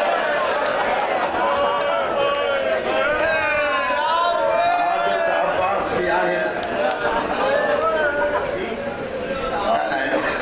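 A man recites in a loud, chanting voice through a microphone in an echoing hall.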